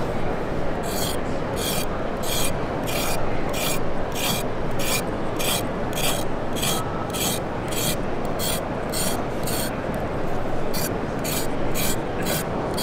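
A knife scrapes a carrot in quick, steady strokes.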